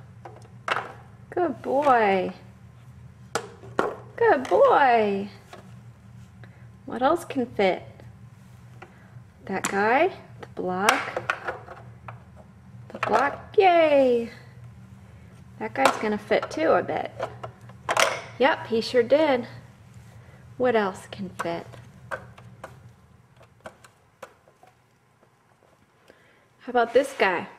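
Wooden blocks clack against a plastic toy.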